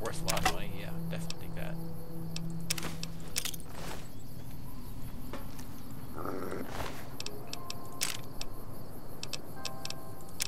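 Short soft clicks tick now and then.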